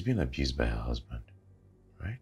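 A man speaks in a low voice close by.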